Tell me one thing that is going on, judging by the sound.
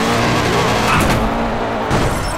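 A car crashes and scrapes along a wall.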